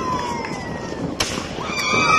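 A firework fountain hisses and roars nearby.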